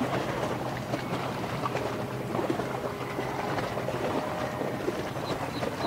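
Water splashes and churns against the bow of a large passing ship.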